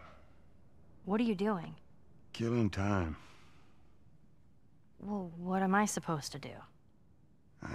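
A girl speaks in a questioning voice.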